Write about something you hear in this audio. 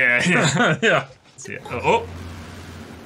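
Two young men laugh together close to a microphone.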